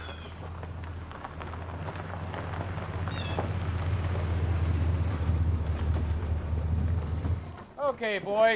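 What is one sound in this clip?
A low engine rumbles steadily, then cuts off.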